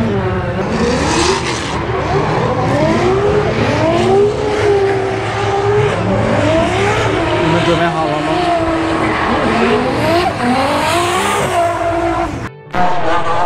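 A car engine revs loudly, its pitch climbing and falling over and over.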